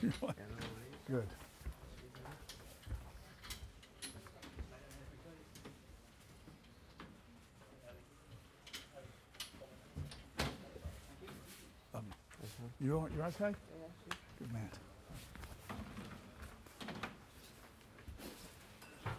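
An elderly man speaks over a loudspeaker in a large hall.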